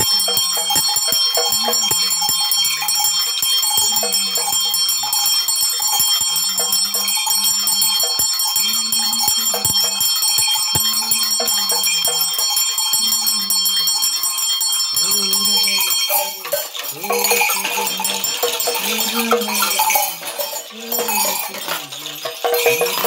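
An elderly man chants in a low, steady voice close by.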